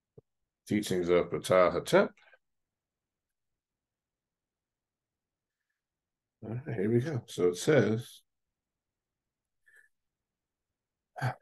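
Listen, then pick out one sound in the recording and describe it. A middle-aged man speaks calmly into a microphone, heard as if over an online call, in short bursts with pauses.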